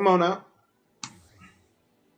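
A game menu gives a short click as a selection changes.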